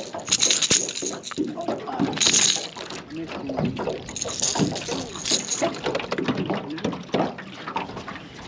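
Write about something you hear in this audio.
A caught fish thrashes and flaps against a hand.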